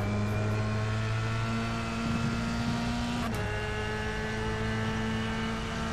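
A racing car engine whines at a steady high pitch.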